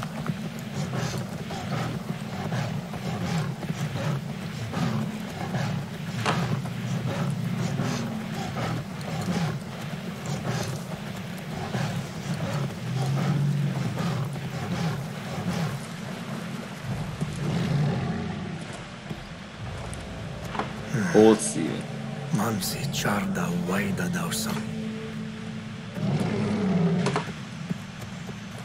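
A young man talks steadily and with animation into a close microphone.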